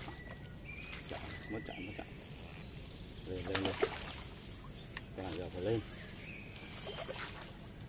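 A fish splashes and thrashes at the surface of the water.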